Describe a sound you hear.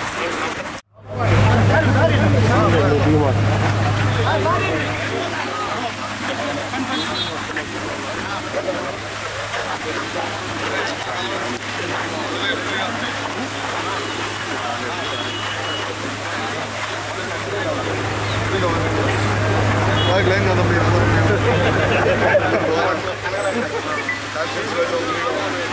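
A crowd of men chatter loudly all around, close by, outdoors.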